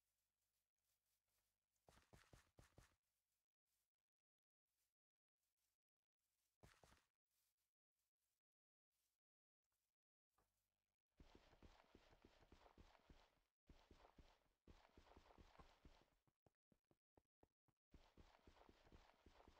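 Footsteps tread steadily on grass and stone.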